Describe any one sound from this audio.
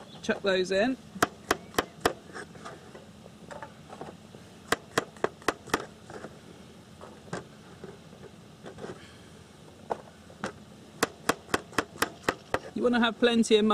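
A knife chops on a cutting board in quick, sharp taps.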